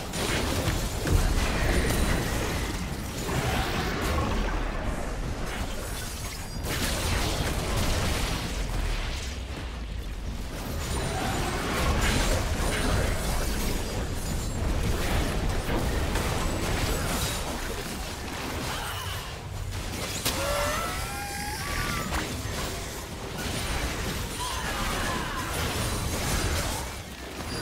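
Magic blasts crackle and boom in a busy game battle.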